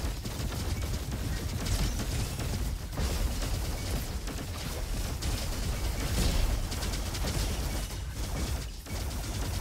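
Energy guns fire in rapid, buzzing bursts.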